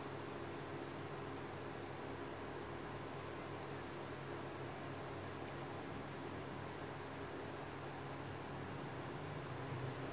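A thin cord rubs and rustles softly as hands pull it taut.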